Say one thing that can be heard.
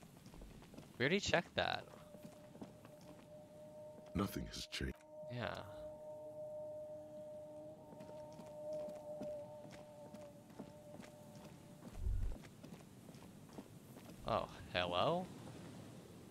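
A young man speaks in short bursts close to a microphone.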